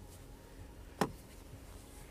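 A car sun visor snaps shut.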